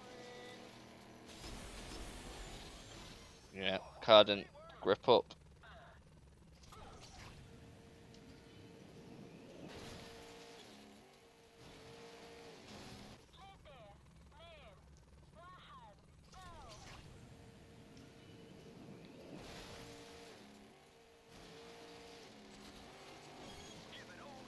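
A racing car engine hums and revs.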